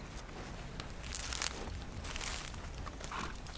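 Leaves rustle as a plant is pulled from the ground.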